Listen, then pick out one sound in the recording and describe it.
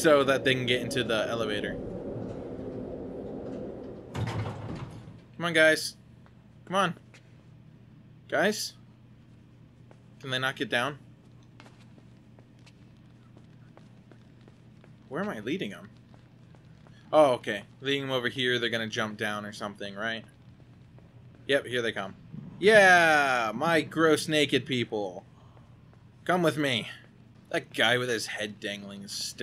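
A young man talks with animation into a close microphone, in short bursts.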